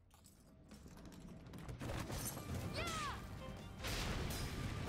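Blows land with sharp impacts.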